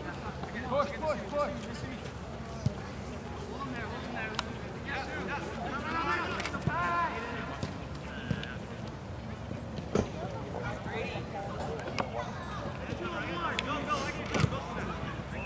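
Young men shout and call out across an open field outdoors.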